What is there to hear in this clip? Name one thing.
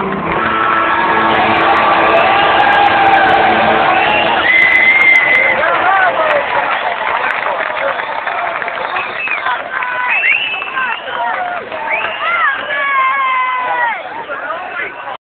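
A large crowd cheers and sings along outdoors.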